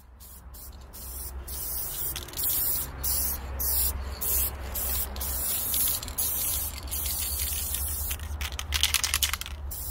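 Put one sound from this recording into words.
A spray can hisses in short and long bursts.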